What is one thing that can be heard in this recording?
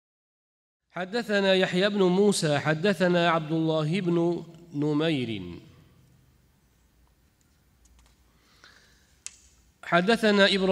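A man chants melodically into a microphone, with a slight echo.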